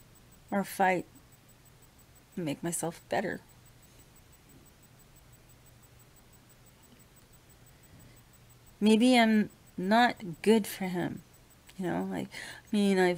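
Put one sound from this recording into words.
A middle-aged woman speaks close to the microphone in short bursts with pauses.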